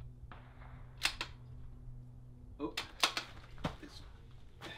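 Metal clicks sharply as a man handles a rifle.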